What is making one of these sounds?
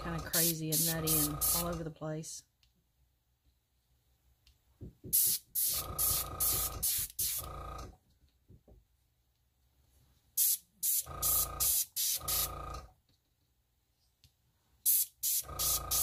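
An airbrush hisses in short bursts.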